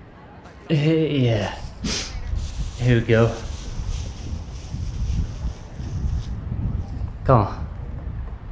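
A man speaks gently and softly close by.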